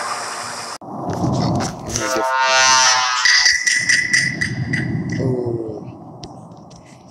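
A dramatic electronic sting swells and booms, then fades.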